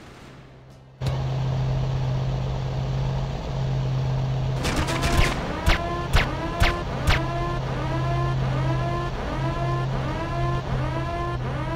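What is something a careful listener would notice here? A motorboat engine hums steadily.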